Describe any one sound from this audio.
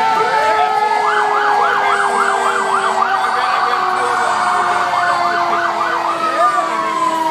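An emergency horn warbles in rapid short bursts.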